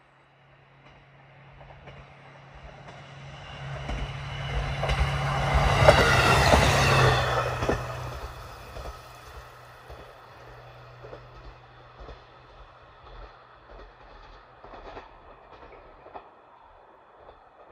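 A train approaches, rumbles past close by and fades into the distance.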